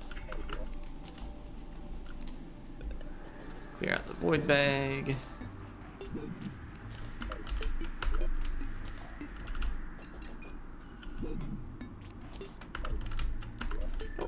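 Short electronic game sounds click and pop.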